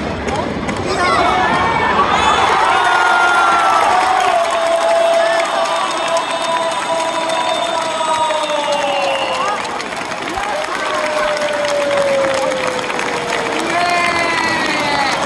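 A large crowd cheers and shouts loudly in an open stadium.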